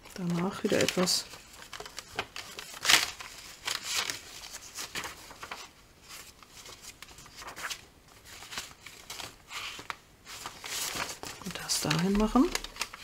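Paper rustles and slides as sheets are shuffled by hand.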